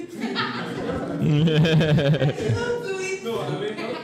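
Several young men laugh.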